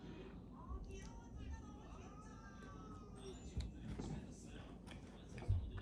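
A young woman chews food with soft, wet sounds.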